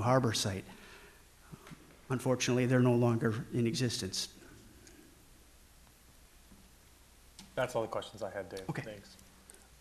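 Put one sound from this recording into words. A middle-aged man speaks with animation into a microphone, with pauses.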